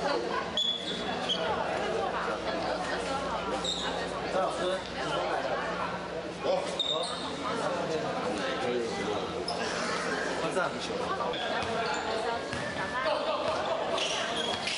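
Many young people chatter and call out in a large echoing hall.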